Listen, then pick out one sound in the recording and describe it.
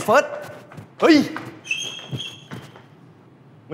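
A young man exclaims loudly.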